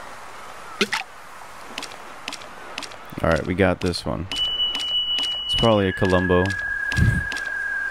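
Water splashes softly as a fish bites at a fishing line.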